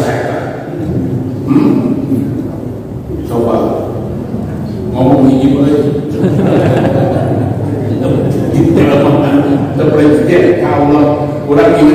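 A man speaks steadily through a microphone, echoing in a large hall.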